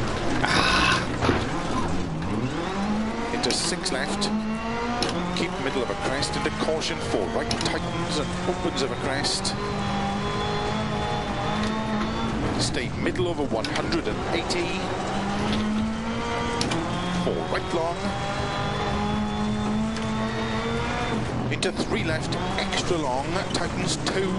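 Gravel sprays and clatters under the tyres.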